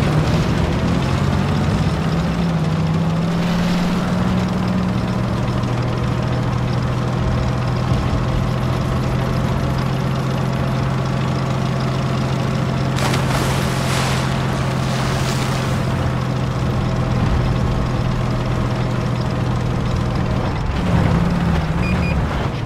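A tank engine drones steadily as the tank drives along.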